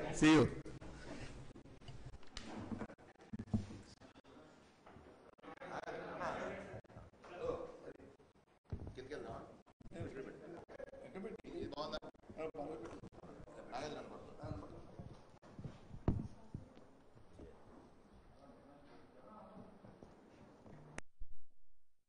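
Several men chat and murmur nearby.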